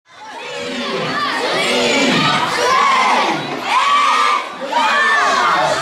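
Children chatter excitedly in a crowd.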